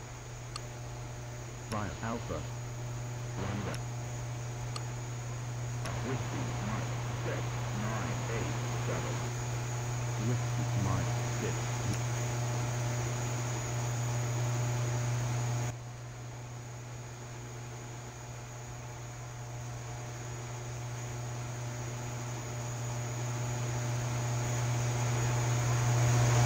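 A propeller plane's engine drones steadily and grows louder toward the end.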